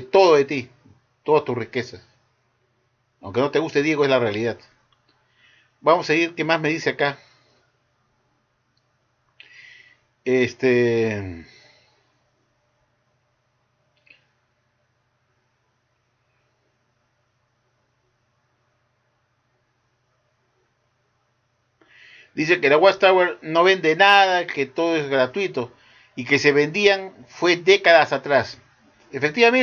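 An elderly man speaks calmly close to a microphone, with long pauses.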